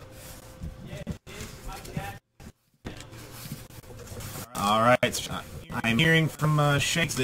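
Cardboard scrapes and rustles as a box is handled close by.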